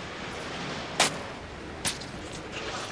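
A knife chops into a watermelon.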